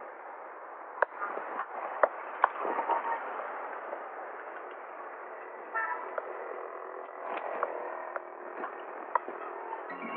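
Heeled shoes click on stone steps.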